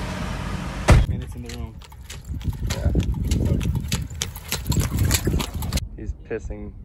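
A horse's hooves clop and cart wheels roll on a road.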